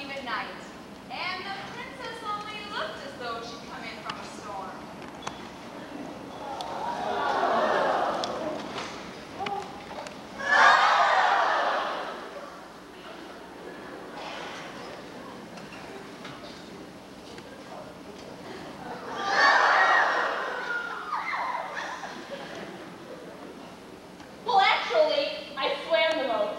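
A young woman sings on a stage, heard from an audience in an echoing hall.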